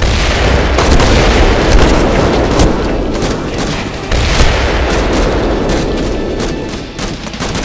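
Gunfire cracks repeatedly in rapid bursts.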